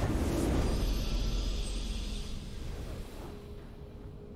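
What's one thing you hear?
A game's victory fanfare swells and then fades away.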